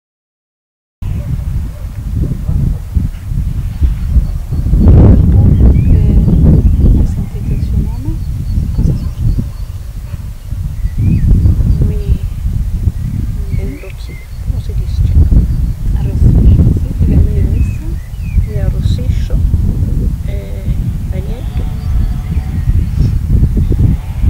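An older woman speaks calmly and close by, outdoors.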